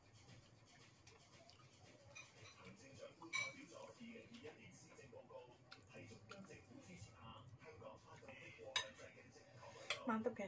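A spoon clinks and scrapes against a plate.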